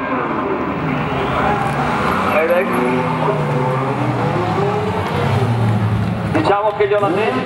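A sports car engine roars loudly as it drives past close by.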